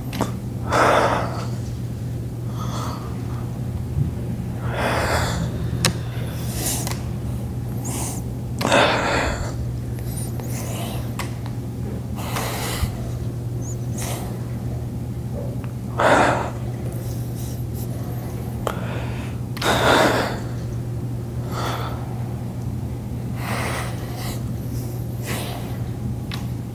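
A man breathes out hard in bursts.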